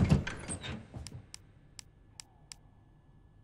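Short menu beeps click one after another.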